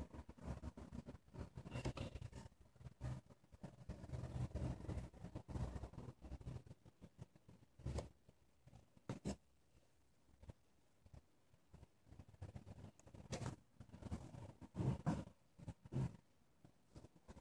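Fingers handle a watch close by, making soft rubbing and tapping noises.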